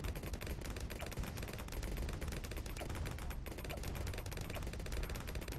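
Rapid game sound effects of shots and popping crackle without a break.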